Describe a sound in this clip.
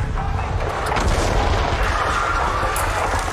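An explosion roars and rumbles.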